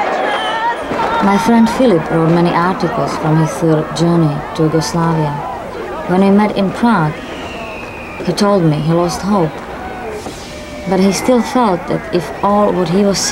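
A crowd of men chants loudly in rhythm.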